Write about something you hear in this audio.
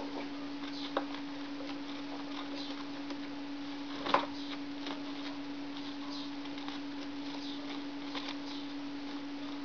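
A small bird rustles and crinkles paper.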